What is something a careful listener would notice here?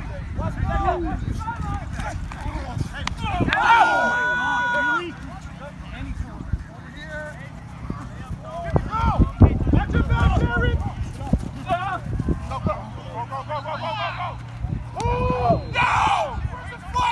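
Players shout and call out across an outdoor field.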